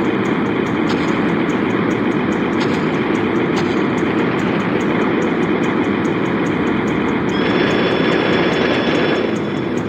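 An electric beam weapon crackles and buzzes steadily.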